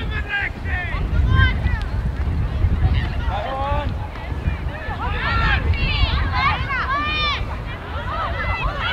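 Young women shout to each other at a distance.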